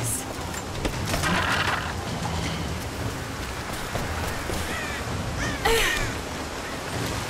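Rubble crumbles and falls with a rush.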